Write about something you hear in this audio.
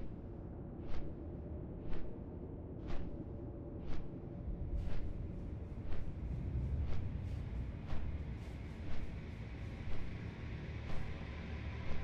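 Large wings flap with a steady beat.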